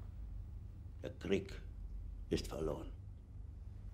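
A man speaks tensely nearby.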